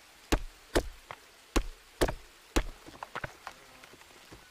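An axe chops into wood with sharp, quick knocks.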